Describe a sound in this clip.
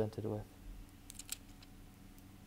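A thin plastic film crinkles softly as it is peeled away.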